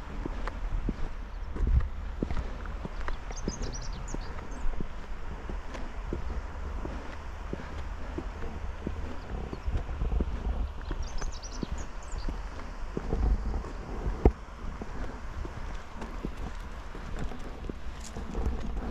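Wind buffets and rumbles against the microphone while moving outdoors.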